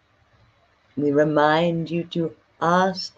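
A young woman speaks close to a microphone in a drawn-out, singing tone.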